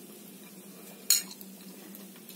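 A metal fork clinks against a plate.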